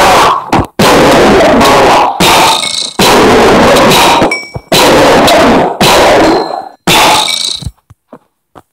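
A rifle fires in loud, rapid bursts.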